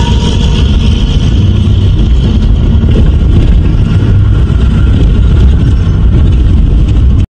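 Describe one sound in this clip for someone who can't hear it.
Tyres crunch and rattle over a rough gravel road.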